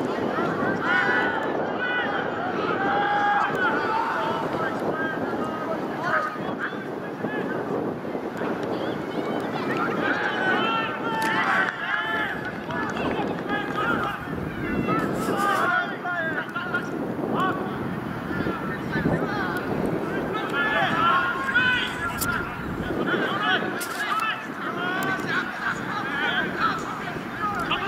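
Women shout and call out across an open field.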